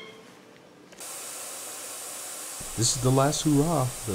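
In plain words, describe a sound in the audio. A spray gun hisses steadily.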